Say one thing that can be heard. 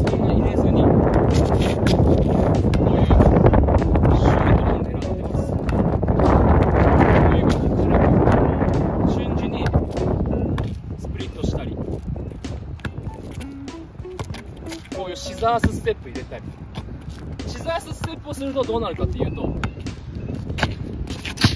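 A basketball bounces on asphalt as it is dribbled.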